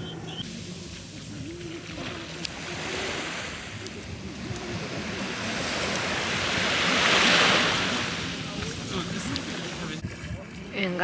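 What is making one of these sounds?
Waves wash up onto a shore.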